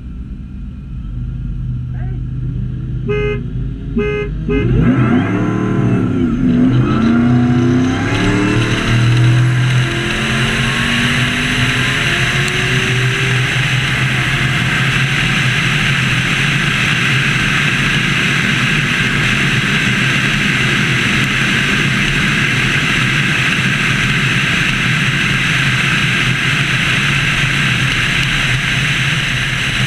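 Tyres roar on the road, growing louder as the car speeds up.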